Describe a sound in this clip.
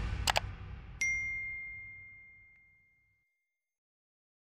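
A small bell dings once and rings out.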